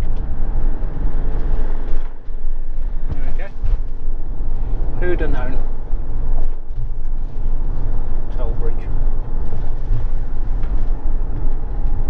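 A car engine hums and tyres roll steadily on the road from inside the car.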